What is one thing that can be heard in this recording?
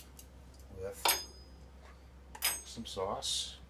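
A metal spoon clinks against a jar.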